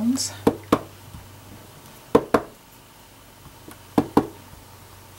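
A wooden stamp taps sharply on an ink pad in quick pairs.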